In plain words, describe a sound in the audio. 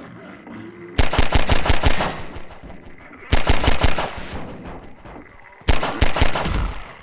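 A pistol fires in rapid bursts of loud shots.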